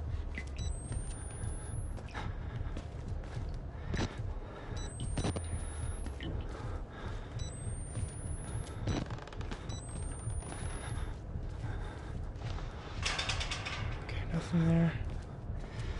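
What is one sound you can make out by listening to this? A young man talks quietly close to a microphone.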